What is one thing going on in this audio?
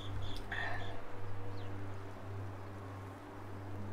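A young man sips a drink.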